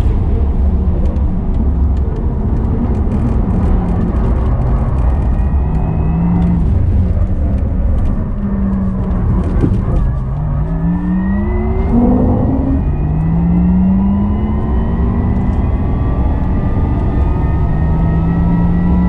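Wind and road noise roar steadily inside a fast-moving car.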